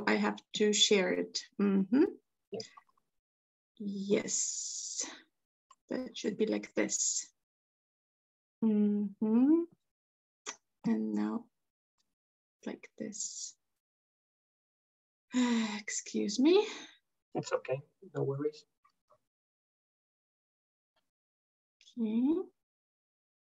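A woman speaks calmly over an online call, pausing often.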